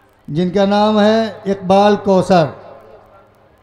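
A man sings out loudly through a microphone and loudspeakers, with echo.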